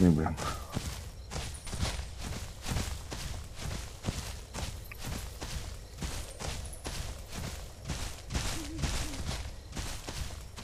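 Heavy footsteps thud and crunch on leaves and undergrowth at a steady run.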